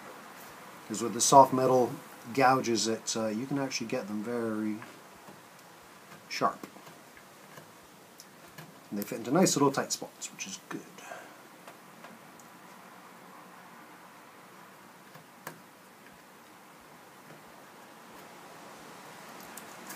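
A chisel scrapes and cuts into wood.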